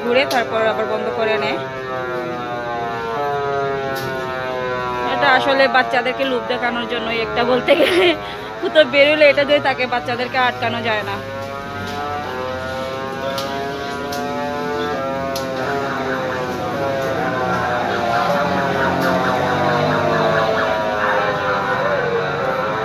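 Cheerful fairground ride music plays loudly throughout.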